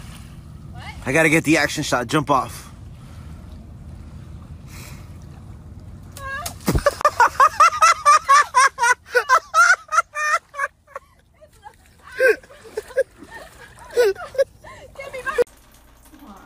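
A young woman shouts and laughs excitedly nearby.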